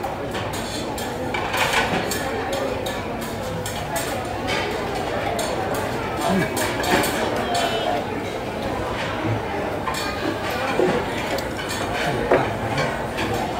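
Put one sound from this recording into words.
Many people chatter around in a busy room.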